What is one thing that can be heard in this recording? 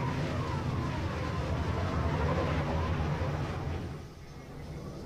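A spacecraft engine roars loudly, then cuts off.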